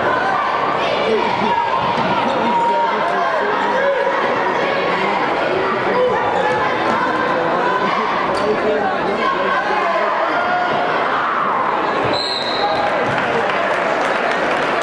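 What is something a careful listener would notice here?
A large crowd murmurs and calls out in a big echoing hall.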